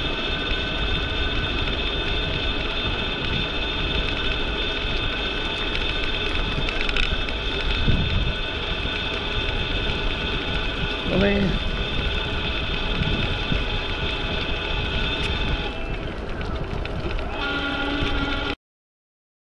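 An electric motor whines steadily while moving along.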